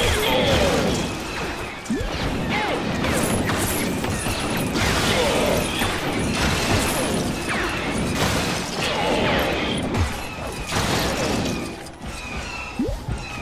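Laser blasters fire with quick, sharp zaps.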